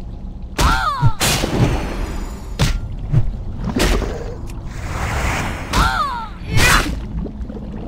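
Sword blows strike a creature with sharp impacts.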